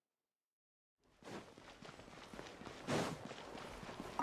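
Footsteps run quickly on stone pavement.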